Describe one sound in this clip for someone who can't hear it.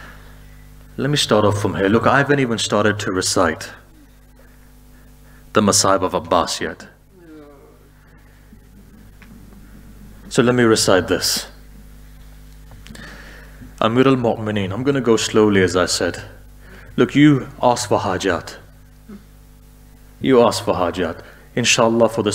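A man speaks with emotion into a microphone, in short bursts with pauses.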